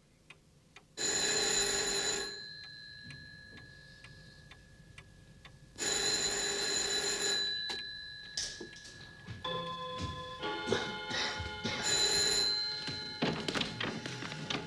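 A grandfather clock chimes with ringing tones.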